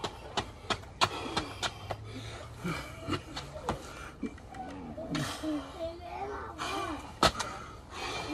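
Push-up handles clack against concrete.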